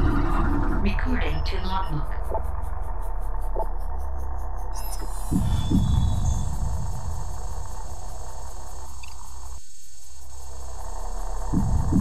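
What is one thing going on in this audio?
A low electronic drone hums steadily.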